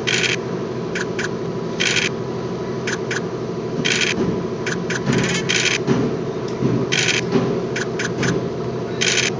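Game pieces click as they hop along the board.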